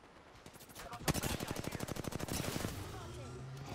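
An automatic gun fires in a rapid burst.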